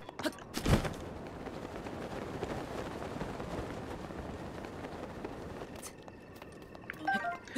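Wind rushes softly past during a glide.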